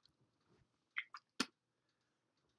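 A plastic bottle clicks in a young man's hands.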